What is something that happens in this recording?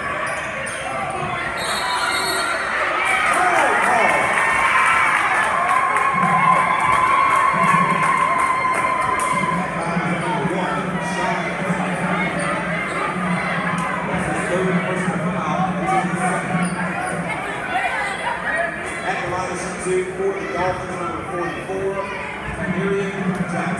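A crowd chatters and cheers in a large echoing gym.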